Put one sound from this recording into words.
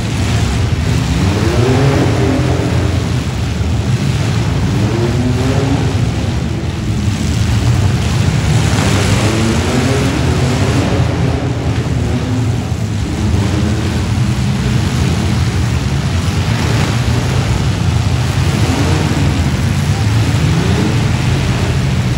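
Car engines roar and rev loudly in a large echoing arena.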